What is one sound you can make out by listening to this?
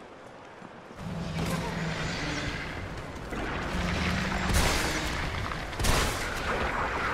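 A monster growls and roars loudly.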